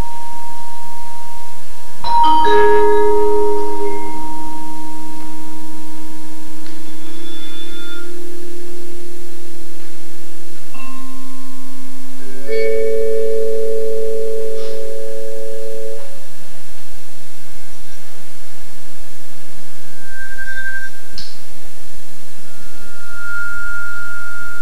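Mallets strike a vibraphone, sounding long ringing notes that overlap and slowly die away.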